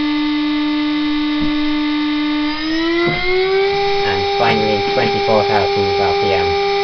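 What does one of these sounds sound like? A high-speed milling spindle whines steadily, then rises in pitch and holds at the higher note.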